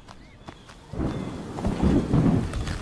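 Rain patters down.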